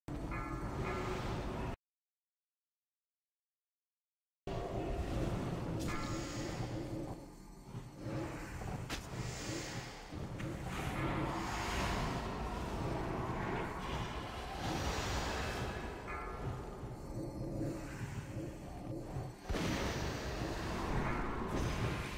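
Magic spells whoosh and crackle amid a battle.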